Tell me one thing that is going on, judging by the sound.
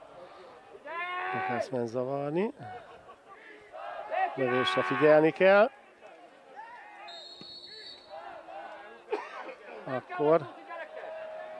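Young men shout loudly to each other outdoors.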